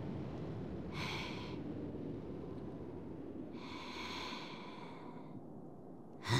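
A man pants heavily, out of breath.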